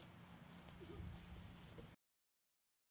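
Footsteps cross grass outdoors.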